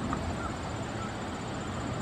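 A wasp buzzes briefly close by.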